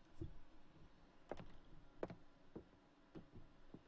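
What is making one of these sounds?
Slow footsteps tread across a floor.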